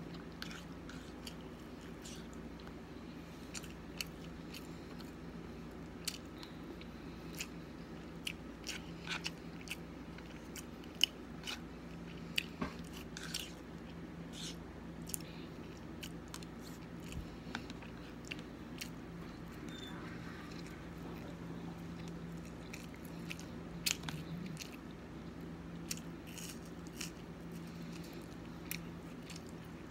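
A fork clicks and scrapes against a plate.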